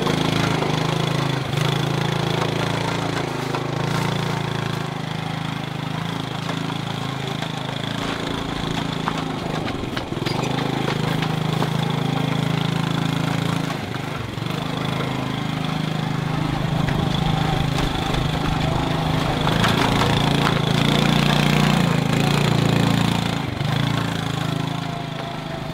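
A motorbike engine hums steadily close by, rising and falling as it rides over rough ground.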